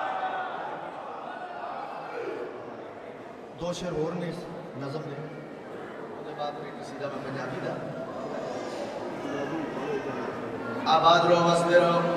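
A man sings a lament loudly through a microphone in an echoing hall.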